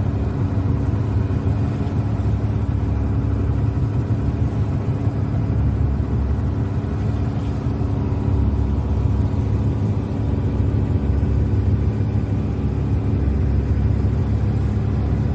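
Water splashes and laps against a boat's hull.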